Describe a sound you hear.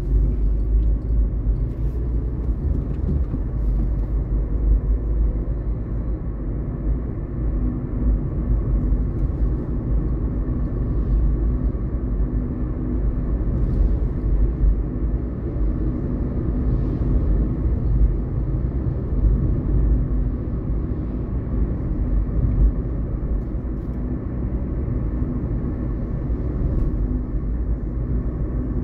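Car tyres roll on asphalt, heard from inside the car.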